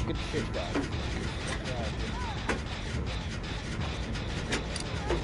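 A machine clanks and rattles as it is worked on by hand.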